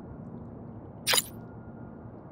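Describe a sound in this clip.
A short electronic message chime sounds.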